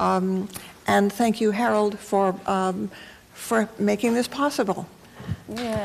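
A middle-aged woman speaks calmly into a microphone.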